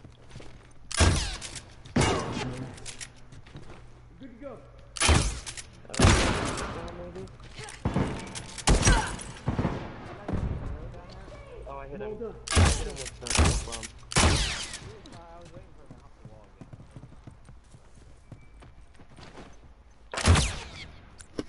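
Gunshots ring out in loud, sharp bursts with a short echo.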